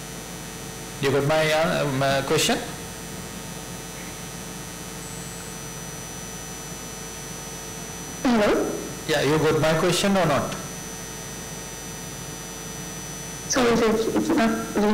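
A woman speaks calmly over an online call, heard through a loudspeaker in a room.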